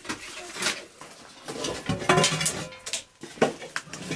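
Dry brushwood crackles and rustles as it is handled.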